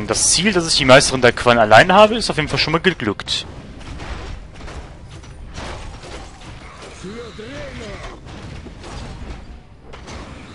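Magic spells burst with crackling blasts.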